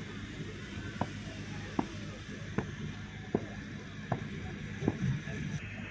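Boots stamp on the ground in a steady marching beat.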